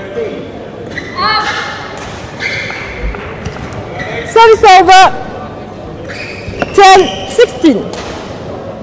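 Sports shoes squeak sharply on the court floor.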